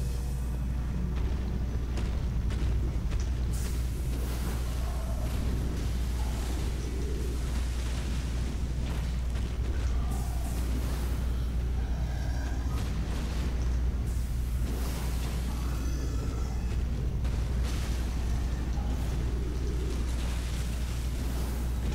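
Sword blades swish and clash in quick, repeated strikes.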